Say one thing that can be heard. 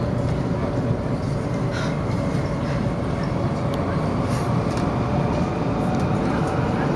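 A train rumbles steadily at speed, heard from inside a carriage.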